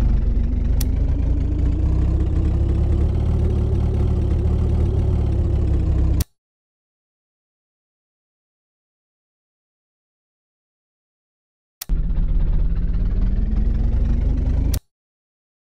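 A car engine roars steadily at speed.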